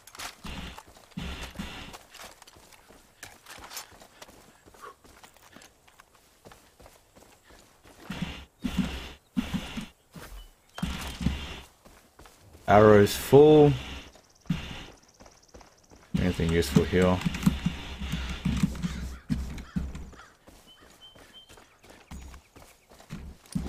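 Footsteps crunch through dry grass and dirt.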